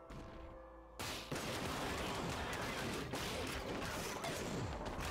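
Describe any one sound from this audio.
Rapid video game blasts and hits crackle.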